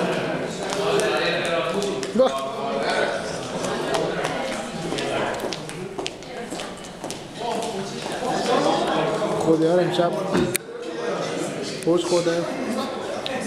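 Small children's shoes patter on a hard floor.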